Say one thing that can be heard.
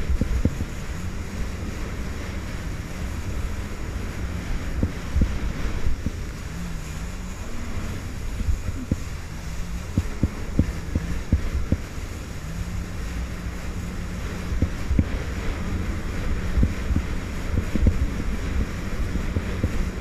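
Spray splashes up from the water.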